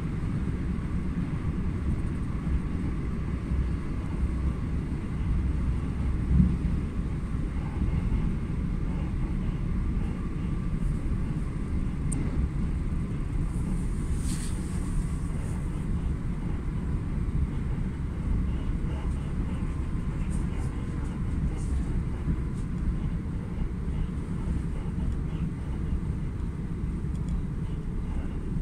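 A train rumbles steadily along the tracks at speed, heard from inside a carriage.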